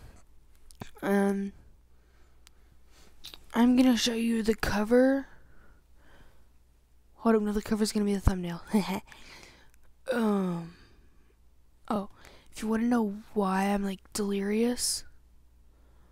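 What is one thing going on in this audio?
A young woman speaks close to a phone microphone, with animation.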